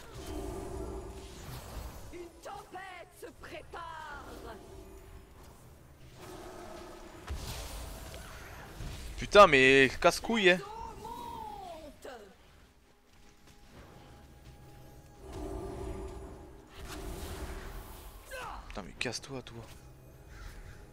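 Magic spells crackle and burst in a video game battle.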